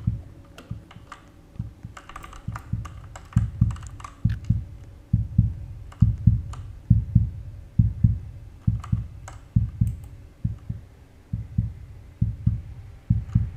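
Heavy footsteps thud at a steady walking pace.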